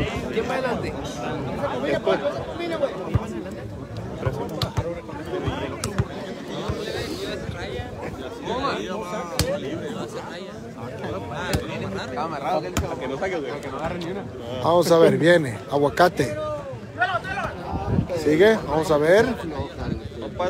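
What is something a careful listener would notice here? A ball is struck with dull thumps.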